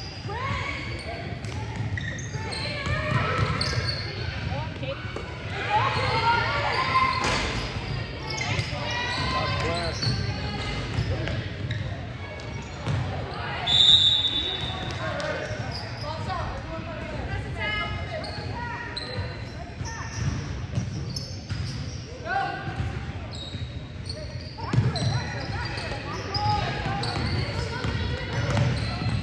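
Spectators nearby chatter and call out.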